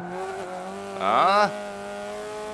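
A racing car engine revs up sharply for a moment.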